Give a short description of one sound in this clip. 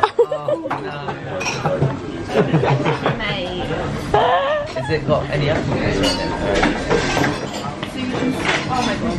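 Several young men and women chat nearby in a busy, lively room.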